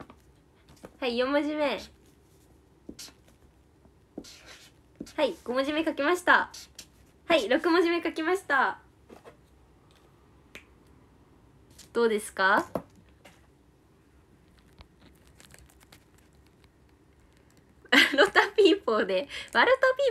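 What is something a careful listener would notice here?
A young woman speaks cheerfully and close by, in short bursts.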